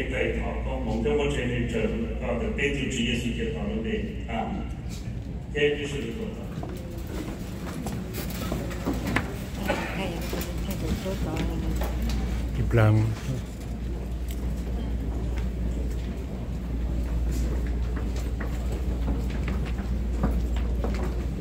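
A crowd murmurs quietly in a large hall.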